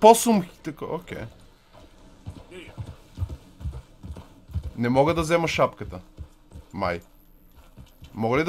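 Horse hooves thud softly on a dirt path.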